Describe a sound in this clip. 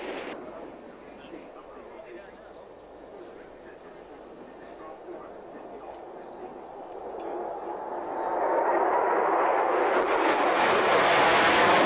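A B-1 jet bomber roars in from a distance, building to a loud roar as it passes low overhead.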